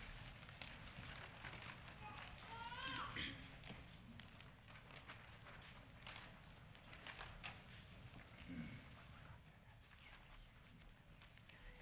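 Sheets of paper rustle and flutter.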